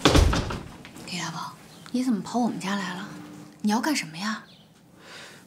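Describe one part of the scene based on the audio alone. A young woman speaks in a surprised, questioning tone close by.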